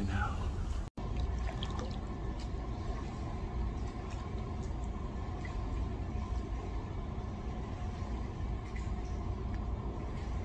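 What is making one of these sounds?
Water sloshes as a man wades in a pool.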